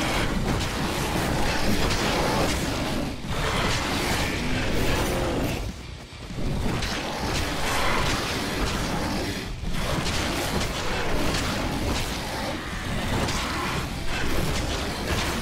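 Claws slash and tear through flesh again and again.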